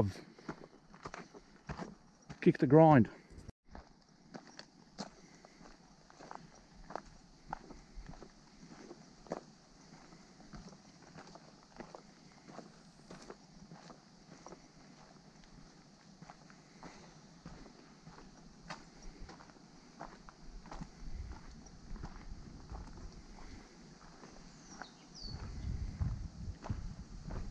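Footsteps crunch on a dry dirt trail.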